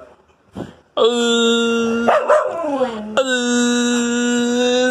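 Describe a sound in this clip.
A dog howls in long, steady, wavering tones.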